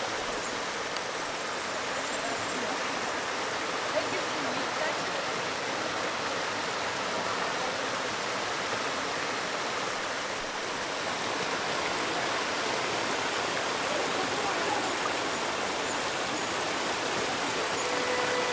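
A mountain stream rushes over rocks outdoors.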